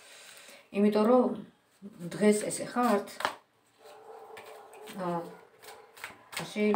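Playing cards rustle as they are shuffled.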